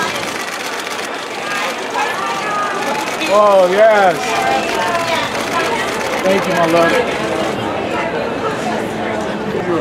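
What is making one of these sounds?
A crowd of people chatter loudly nearby.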